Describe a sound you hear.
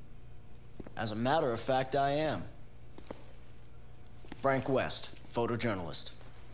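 A young man answers with animation.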